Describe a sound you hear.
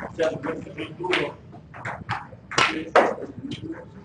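A cue tip strikes a snooker ball with a sharp click.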